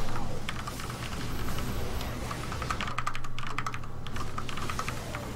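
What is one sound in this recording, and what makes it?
Game battle sounds of rapid zaps and blasts crackle.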